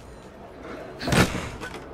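A wooden crate thuds as it is opened.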